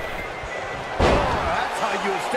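A body slams down hard onto a wrestling ring mat with a loud thud.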